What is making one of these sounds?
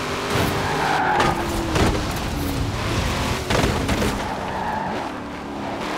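Tyres screech on tarmac through a bend.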